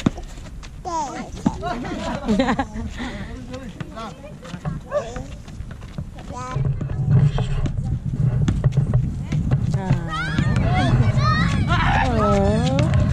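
Children and young people shout and call out nearby outdoors.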